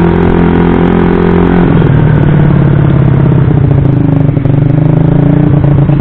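A tuned single-cylinder scooter engine drones loudly while riding along a road, its pitch dropping then holding.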